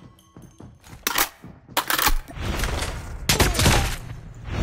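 Gunshots fire in short, sharp bursts.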